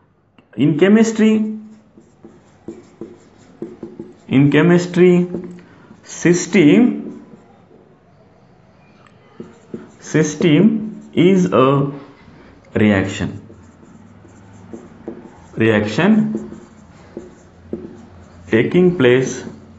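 A man speaks calmly in short phrases, as if explaining, close by.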